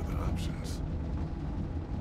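A man speaks calmly and softly up close.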